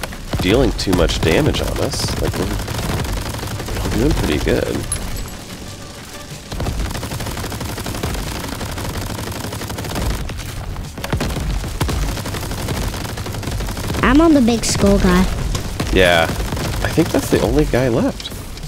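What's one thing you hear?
Game explosions boom and crackle.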